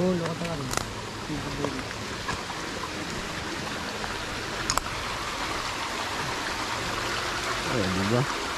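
A shallow stream rushes and splashes over rocks.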